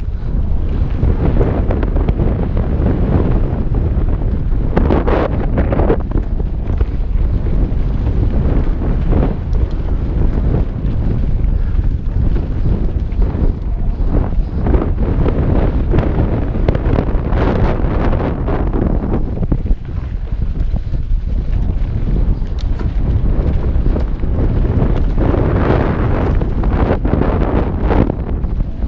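Wind rushes loudly past a helmet-mounted microphone.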